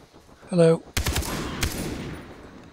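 A rifle fires a quick burst of shots.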